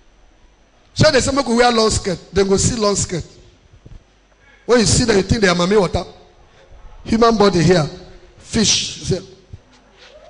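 A man preaches loudly into a microphone over loudspeakers, in a large echoing hall.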